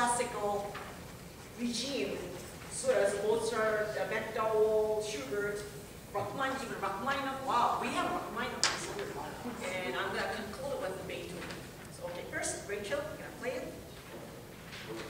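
A woman speaks calmly through a microphone in an echoing hall.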